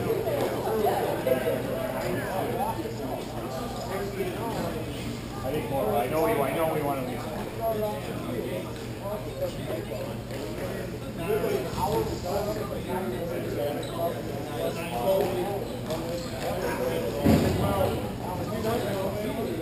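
Distant young men call out to each other across a large echoing hall.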